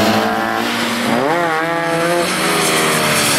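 A car engine revs up sharply as it accelerates.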